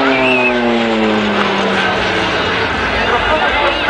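A propeller plane's engine drones overhead, dropping in pitch as it passes.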